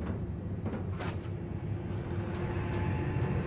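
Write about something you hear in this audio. A boot kicks a metal grate with a loud clang.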